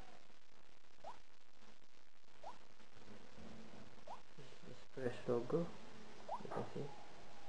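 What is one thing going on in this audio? A phone plays short rising beeps.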